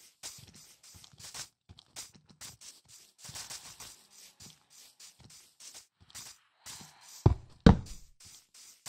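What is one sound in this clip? Footsteps tread on grass at a steady walking pace.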